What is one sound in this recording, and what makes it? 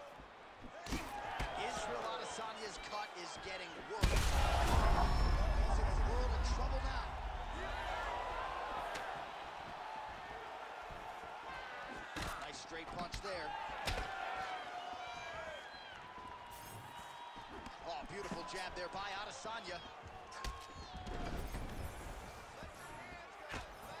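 Punches and kicks land with dull thuds.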